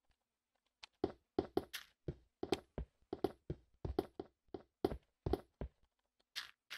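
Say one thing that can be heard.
A pickaxe knocks repeatedly against stone.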